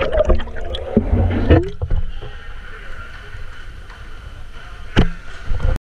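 Water splashes and sloshes as a swimmer breaks the surface.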